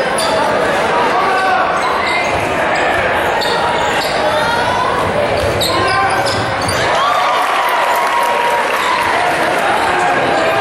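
A crowd in a large echoing gym cheers and chatters.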